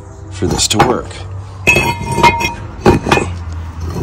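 A heavy metal brake rotor clanks as it is set down on concrete.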